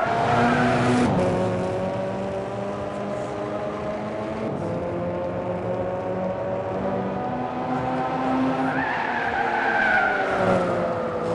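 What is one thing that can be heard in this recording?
A race car engine roars steadily, its pitch rising and falling with gear shifts.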